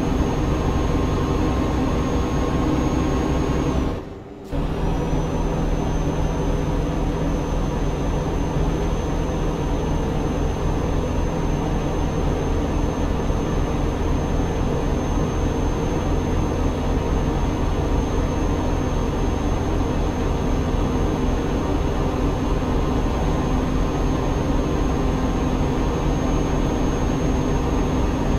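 A truck engine drones steadily with a low rumble.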